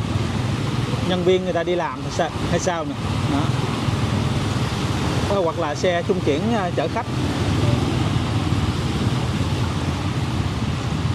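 Motorbike engines buzz nearby.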